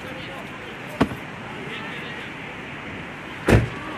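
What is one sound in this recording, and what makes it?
A football is kicked with a hard thud.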